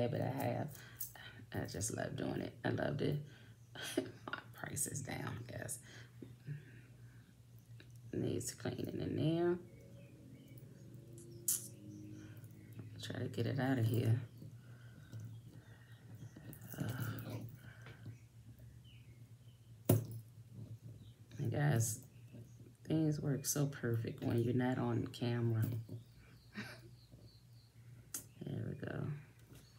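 Metal bracelet links clink softly as they are handled.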